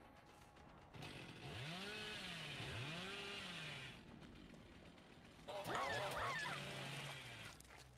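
A chainsaw revs loudly, its pitch rising and falling.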